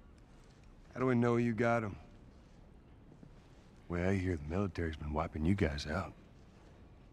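A man speaks in a deep, gruff voice.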